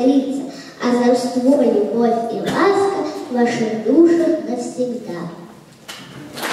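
A young girl sings into a microphone in a hall.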